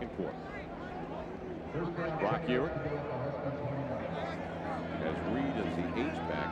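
A large stadium crowd murmurs and cheers outdoors.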